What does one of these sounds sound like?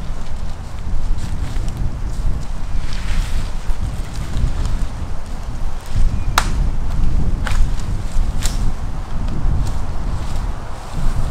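Footsteps rustle through undergrowth.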